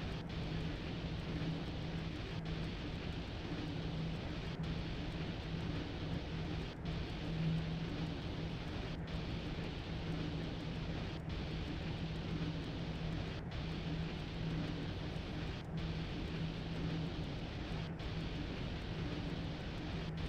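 A train engine rumbles steadily.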